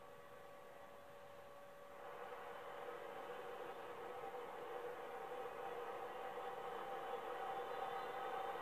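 A jet engine roars through a small TV speaker, growing louder.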